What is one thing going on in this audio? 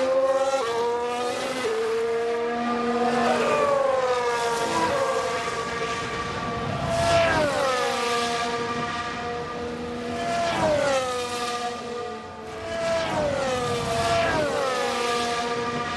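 Racing car engines whine at high revs, rising and falling in pitch as the cars speed past.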